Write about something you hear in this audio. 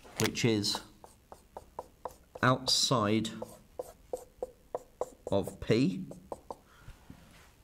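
A marker taps and squeaks quickly on a whiteboard.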